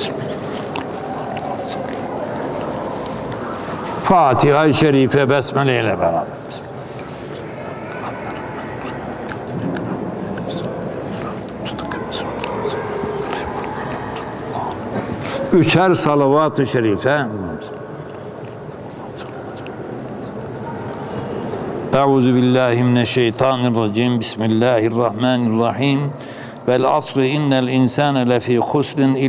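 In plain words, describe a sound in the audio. An elderly man recites in a melodic, wavering voice through a microphone.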